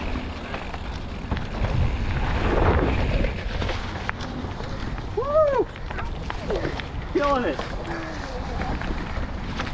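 Bicycle tyres crunch and rattle over a rough dirt and gravel trail.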